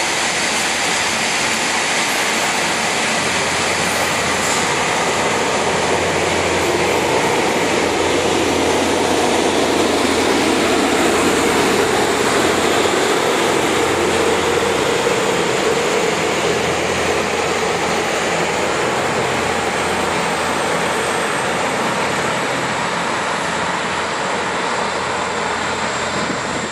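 A train rumbles and clatters past on the tracks, then slowly fades into the distance.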